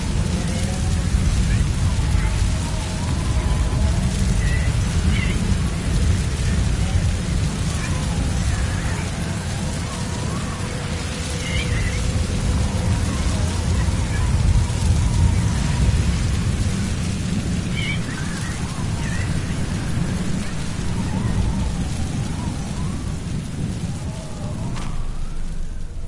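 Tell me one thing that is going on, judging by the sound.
A strong wind roars and howls outdoors in a sandstorm.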